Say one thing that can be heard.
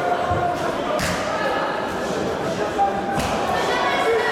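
Boxing gloves thud as fighters land punches.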